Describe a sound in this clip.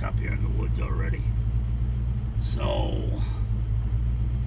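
An elderly man speaks close by in a low, relaxed voice.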